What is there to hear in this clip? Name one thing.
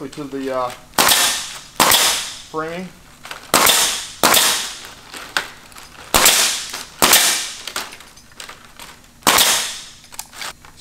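A pneumatic nail gun fires sharp bursts with a hiss of air.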